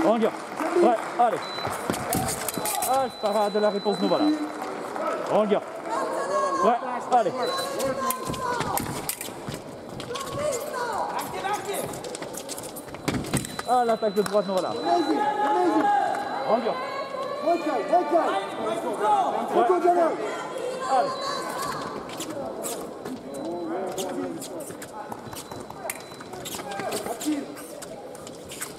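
Fencers' shoes stamp and squeak on the floor.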